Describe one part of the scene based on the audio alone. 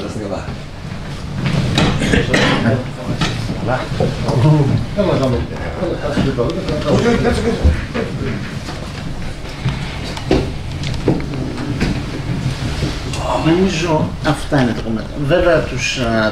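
Several middle-aged and elderly men talk over one another nearby.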